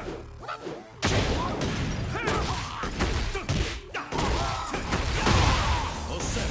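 Fiery blasts burst with a loud whoosh.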